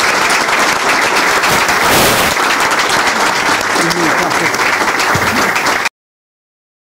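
A large crowd claps and cheers loudly.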